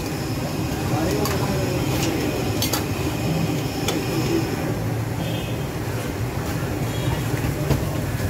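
Tea splashes as a ladle pours it back into a pot.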